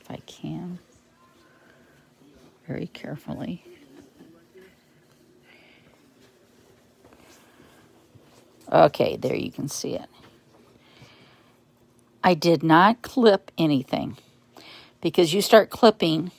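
Fabric rustles softly as fingers handle it.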